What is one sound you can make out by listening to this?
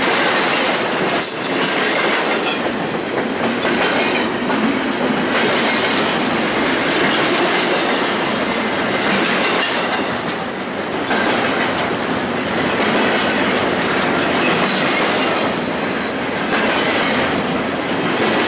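Steel wheels squeal and clack over rail joints.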